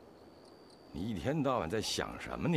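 A young man answers with animation, close by.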